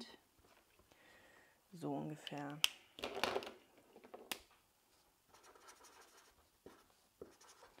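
A marker squeaks softly as it strokes across paper.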